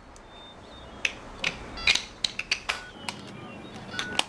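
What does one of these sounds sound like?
Buttons click on a mobile phone as a man presses them.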